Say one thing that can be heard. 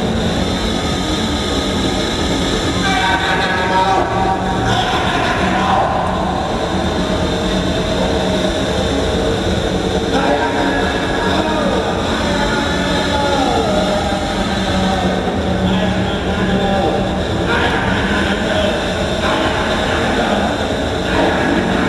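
Electronic music plays live through loudspeakers in a large hall.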